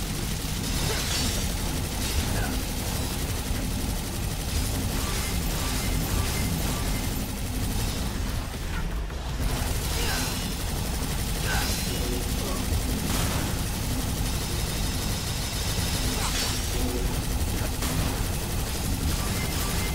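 Magic blasts burst with loud whooshes.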